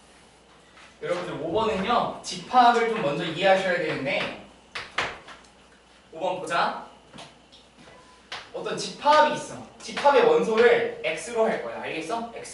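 A man lectures with animation.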